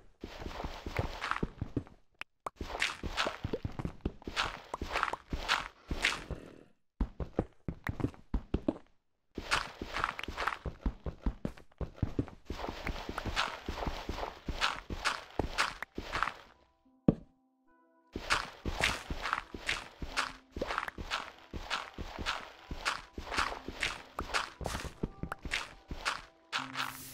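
A pickaxe and shovel chip rapidly at stone and gravel.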